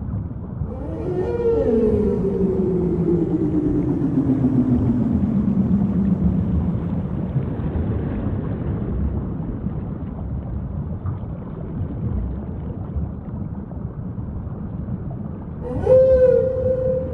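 Water rumbles and swishes steadily, heard from underwater.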